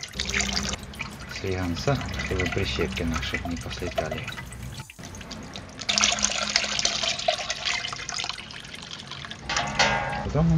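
A wooden spoon stirs and sloshes thick liquid in a large pot.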